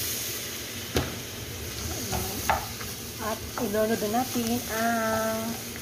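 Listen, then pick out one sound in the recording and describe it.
A wooden spoon scrapes and knocks against a frying pan.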